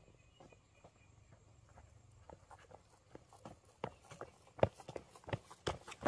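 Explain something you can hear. Bare footsteps come down a dirt slope toward the listener, growing louder.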